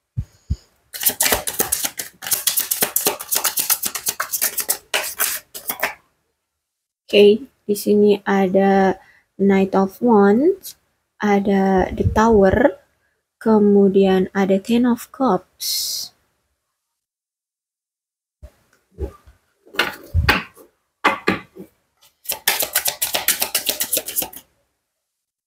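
Playing cards rustle and flutter as a deck is shuffled by hand.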